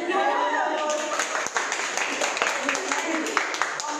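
A woman claps her hands repeatedly.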